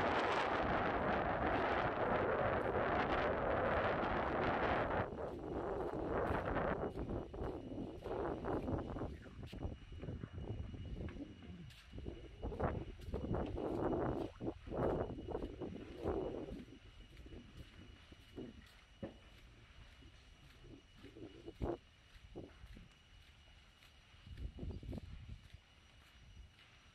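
A large fire crackles and pops in the distance.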